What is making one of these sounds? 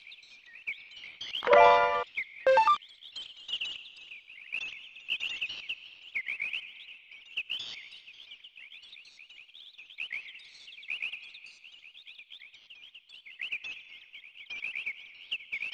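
Birds chirp steadily all around.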